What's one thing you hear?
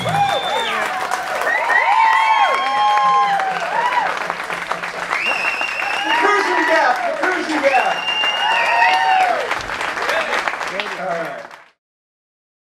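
A band plays an upbeat rock song with electric guitars and drums.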